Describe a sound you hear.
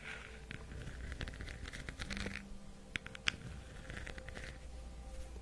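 A young woman whispers softly close to a microphone.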